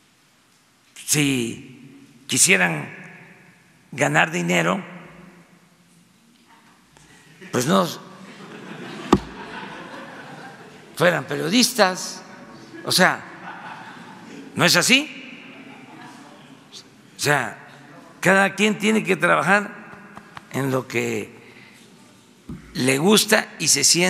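An elderly man speaks calmly into a microphone in a large echoing room.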